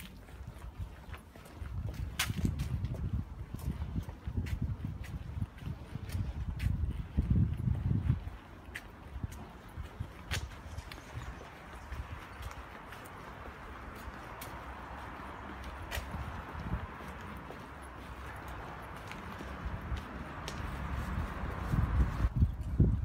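Footsteps tread on a paved pavement outdoors.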